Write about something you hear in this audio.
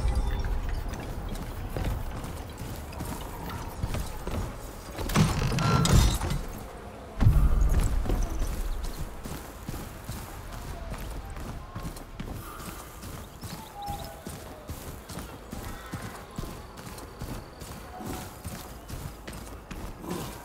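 Footsteps patter on dirt and wooden boards.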